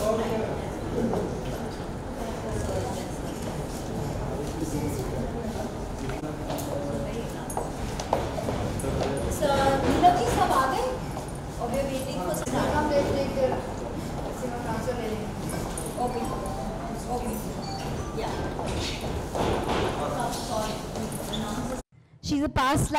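A crowd of people chatter around close by.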